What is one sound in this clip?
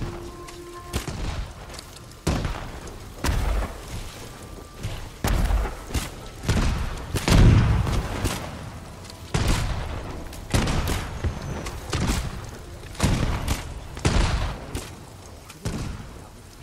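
Arrows whoosh from a bow, one shot after another.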